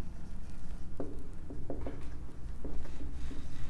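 A marker squeaks and taps against a whiteboard.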